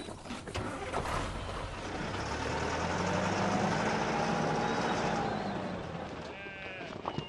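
A truck engine rumbles as the truck drives away.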